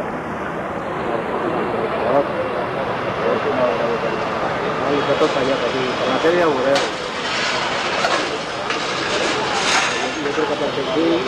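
Men shout and talk urgently nearby outdoors.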